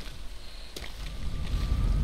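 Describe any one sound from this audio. Flames crackle and roar close by.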